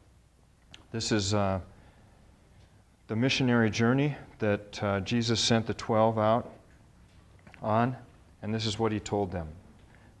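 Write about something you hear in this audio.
A middle-aged man reads aloud slowly from a book.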